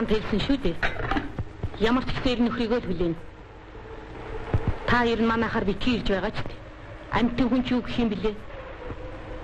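A young woman speaks with animation, heard through an old, hissy recording.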